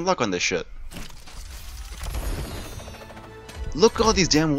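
A game loot box opens with a rising magical whoosh and burst.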